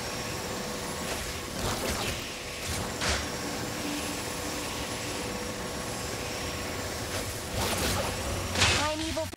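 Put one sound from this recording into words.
Jet thrusters roar steadily, with sharp rushing bursts now and then.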